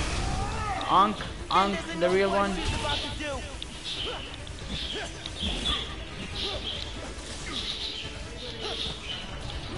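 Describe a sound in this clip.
Heavy blows land with thuds.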